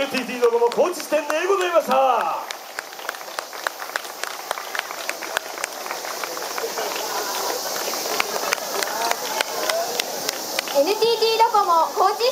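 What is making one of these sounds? A group of young women shout in unison nearby.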